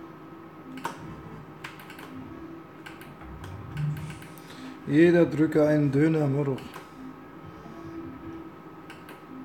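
A slot machine plays short electronic tunes and beeps while its reels spin.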